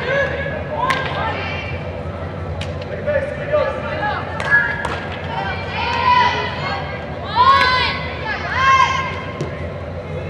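A ball thumps off a player's foot.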